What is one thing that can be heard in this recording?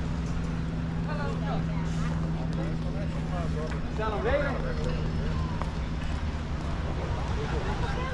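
Children's voices call out close by.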